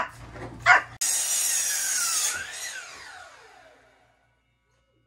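A power saw whines and slowly winds down.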